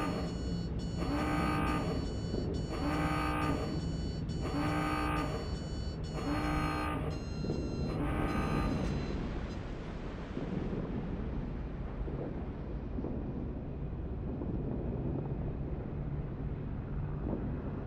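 Water splashes and churns along the hull of a moving ship.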